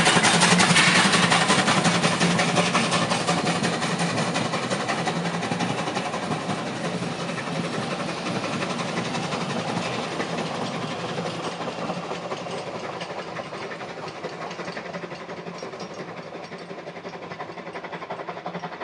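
A steam train's carriages clatter over the rails and slowly fade into the distance.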